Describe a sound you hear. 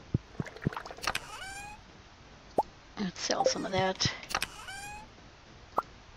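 Short electronic blips and pops sound as items are moved into a chest.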